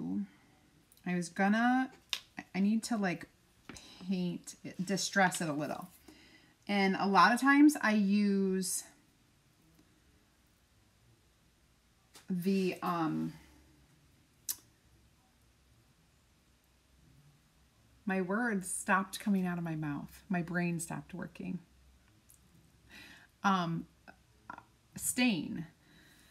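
A woman talks with animation, close to a microphone, with pauses.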